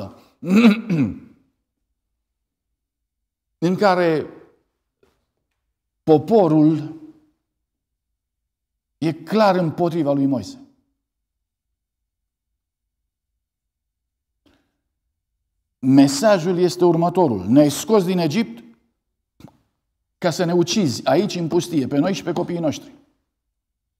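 A middle-aged man preaches slowly and with emphasis through a microphone, pausing between phrases.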